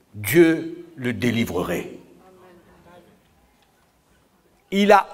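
A middle-aged man speaks with animation into a handheld microphone.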